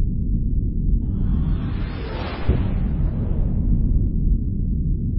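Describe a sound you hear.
A starship rushes off with a rising whoosh that fades away.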